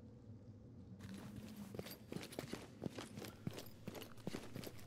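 Footsteps crunch across a debris-strewn floor.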